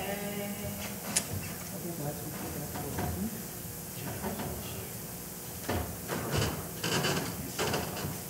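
A woman talks quietly in an echoing hall.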